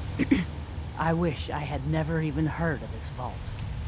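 A young woman speaks close by in a weary, regretful tone.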